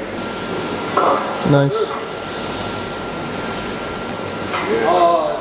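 A young man grunts and groans loudly with effort.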